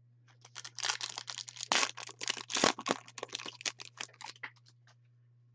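A foil wrapper crinkles and rustles as hands tear it open.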